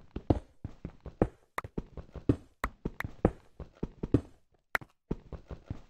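A pickaxe chips at stone.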